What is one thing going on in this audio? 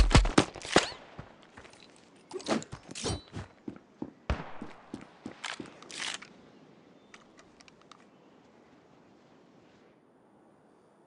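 Footsteps tread quickly on hard ground.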